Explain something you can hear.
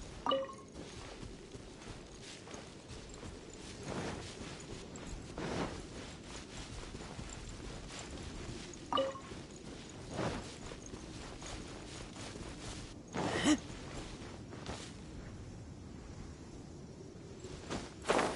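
Footsteps rustle through grass at a steady run.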